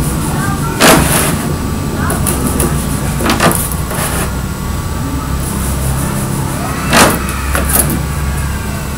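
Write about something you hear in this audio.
A plastic foam sheet rustles and crinkles as it is handled.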